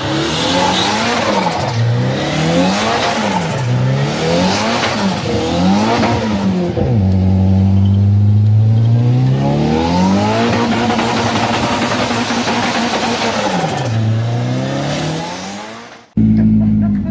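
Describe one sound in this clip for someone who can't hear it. An engine revs up and down hard, roaring.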